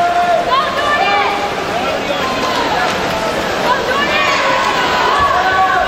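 Swimmers splash and churn through the water.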